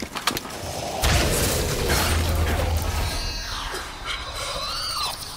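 Electricity crackles and roars loudly.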